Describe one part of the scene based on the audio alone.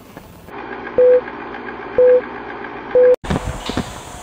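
A countdown beeps three times, once each second.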